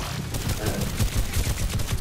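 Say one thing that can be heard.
A video game explosion bursts.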